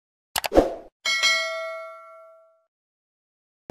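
A small bell chimes and rings out.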